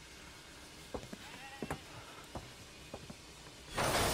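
Footsteps thud on wooden boards.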